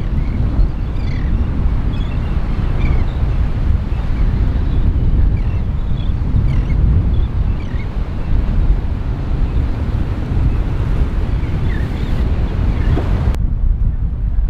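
Waves splash against a stone pier.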